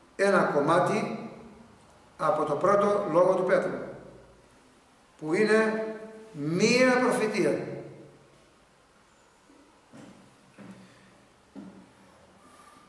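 An elderly man speaks slowly and deliberately, close to a microphone, with long pauses.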